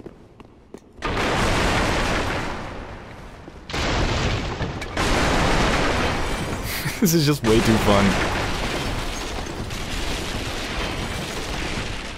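Wooden furniture smashes and clatters apart.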